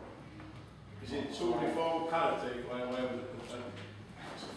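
A man talks.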